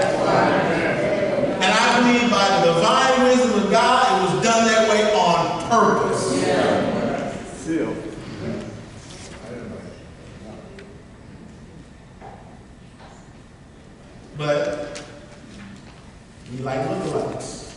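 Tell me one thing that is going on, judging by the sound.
A man speaks with animation through a microphone in an echoing room.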